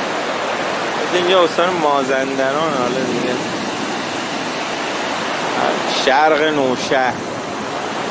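A man calls out loudly over the surf.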